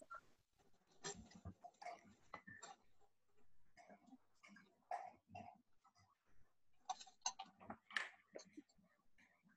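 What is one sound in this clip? Paper crinkles and rustles.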